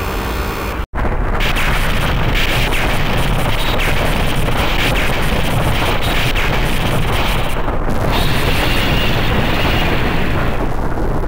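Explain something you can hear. Loud explosions boom and rumble.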